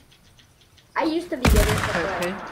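A gun fires with a loud, sharp bang.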